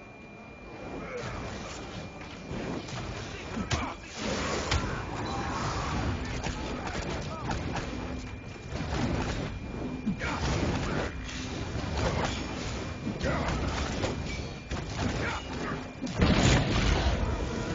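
Magic blasts and weapon strikes clash rapidly in a fight.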